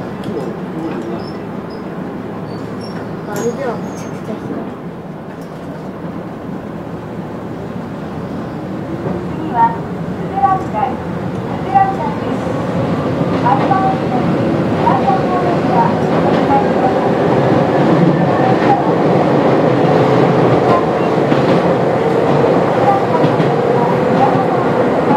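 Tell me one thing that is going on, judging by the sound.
A train rumbles along the tracks, growing louder and echoing inside a tunnel.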